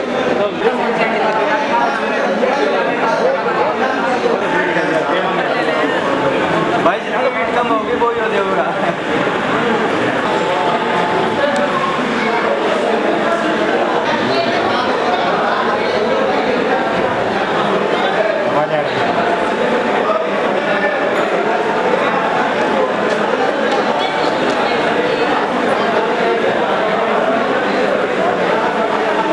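A crowd of men and women chatter all around in a busy hall.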